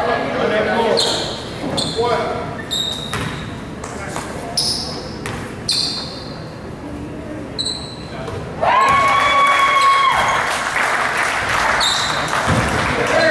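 Basketball sneakers squeak on a hardwood court in a large echoing gym.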